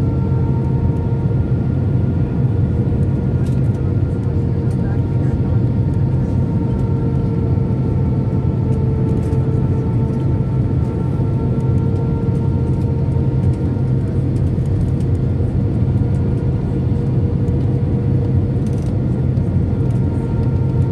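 Jet engines roar steadily as heard from inside an airliner's cabin.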